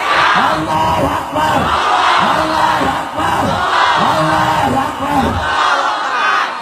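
A man preaches passionately, chanting loudly into a microphone through loudspeakers.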